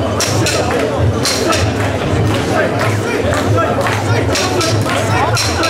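A large crowd of men chants loudly in rhythm outdoors.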